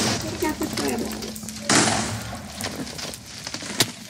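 Blocks crack and break apart.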